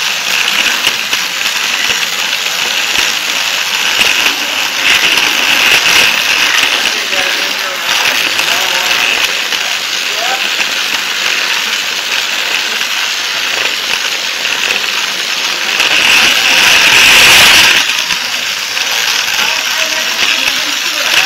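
A toy train's wheels rattle and whir steadily along plastic track.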